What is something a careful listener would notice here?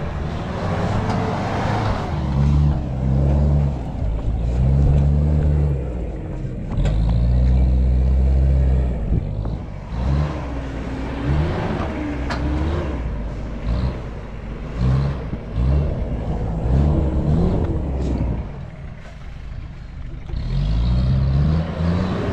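An engine revs hard in bursts, rising and falling.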